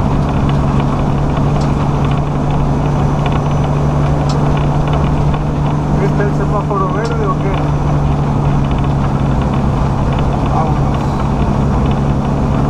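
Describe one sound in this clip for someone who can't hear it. A vehicle's engine hums steadily from inside the cab.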